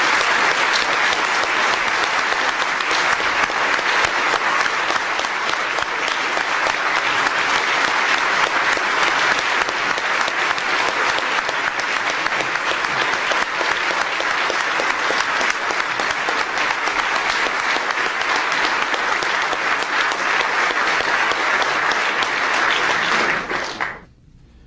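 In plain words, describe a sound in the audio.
A large crowd applauds steadily in an echoing hall.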